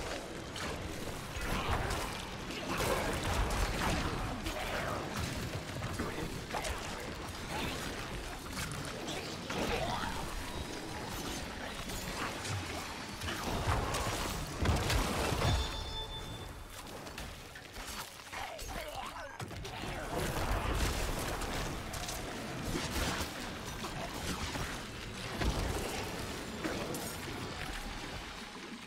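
Weapons strike and magic bursts crash in rapid, dense fighting.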